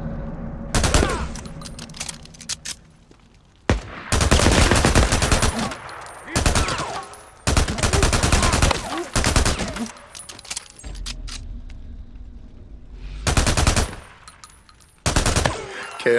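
A pistol fires shots.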